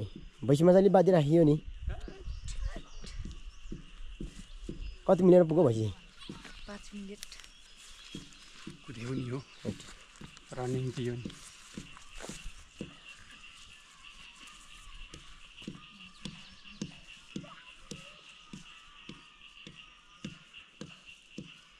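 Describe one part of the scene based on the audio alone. Footsteps swish and thud through grass.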